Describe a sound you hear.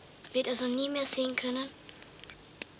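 A boy speaks up close in a high, eager voice.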